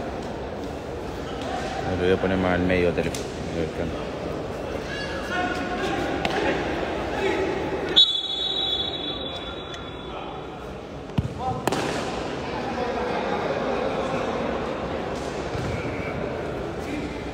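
Voices of young men call out across a large echoing hall.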